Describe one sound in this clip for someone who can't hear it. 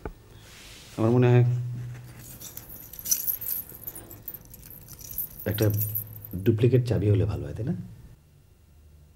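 A man speaks quietly and emotionally, close by.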